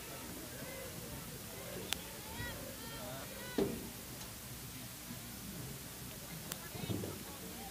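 Young women call out and chatter outdoors in the distance.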